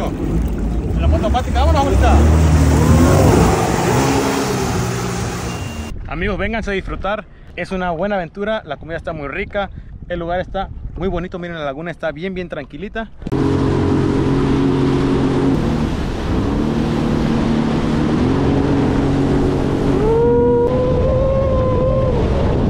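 A jet ski engine roars close by.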